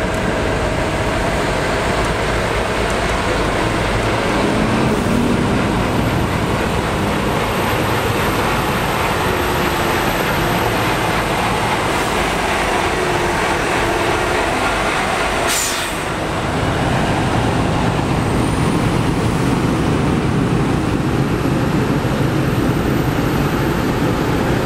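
Heavy tractor engines rumble and roar close by.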